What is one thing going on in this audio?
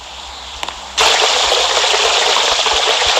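Water rushes along a slide as a raft rides down it.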